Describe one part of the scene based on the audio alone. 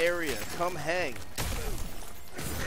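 A burst of ice shatters and crackles.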